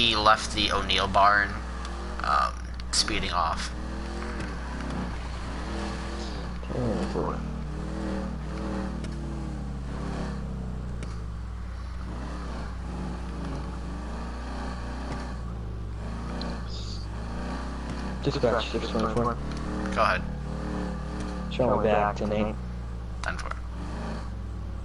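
A car engine drones steadily as a car speeds along a road.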